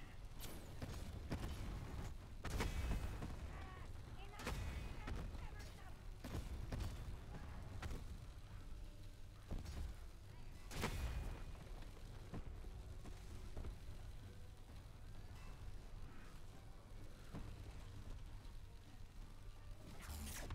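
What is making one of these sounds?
Explosions boom and crackle with sparks.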